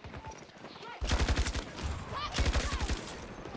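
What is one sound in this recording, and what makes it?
A rifle fires rapid bursts close by.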